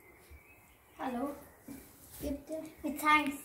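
A girl speaks loudly and excitedly close by.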